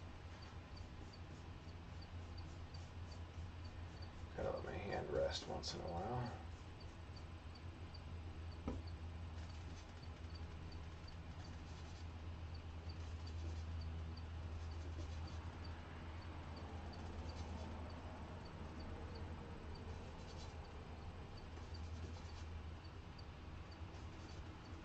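A paintbrush scrapes softly across a canvas.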